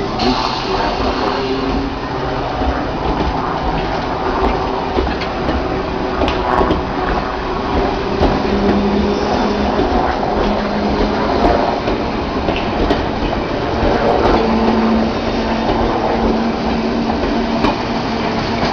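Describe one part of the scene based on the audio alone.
Wheels clack and squeal on the rails.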